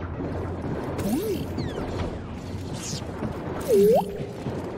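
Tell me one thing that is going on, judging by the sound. A small robot chirps and warbles in rising and falling beeps.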